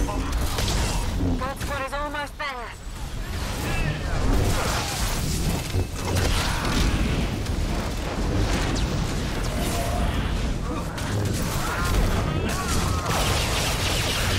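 Laser blasts fire rapidly in a busy fight.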